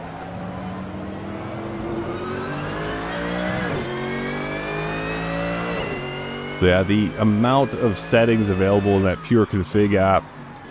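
A racing car engine revs up and drops in pitch as it shifts gears.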